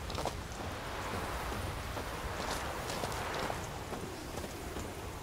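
Footsteps crunch on a dirt path at a steady walking pace.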